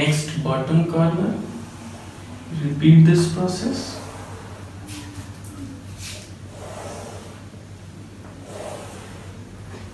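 Chalk scrapes and taps on a board.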